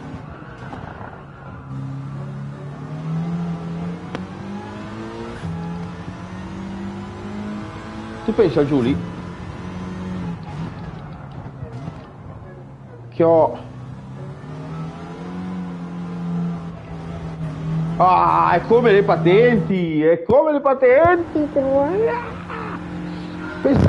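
A racing car engine hums steadily and changes pitch as it speeds up and slows down.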